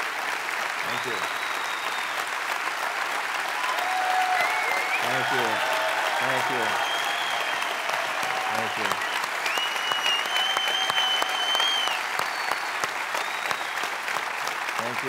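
People in a crowd cheer and whistle.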